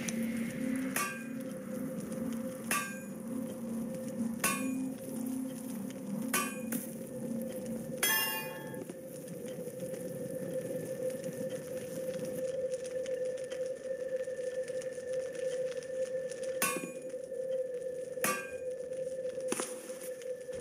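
Short chiming sound effects ring out every second or two.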